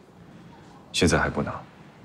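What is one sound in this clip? A young man answers calmly.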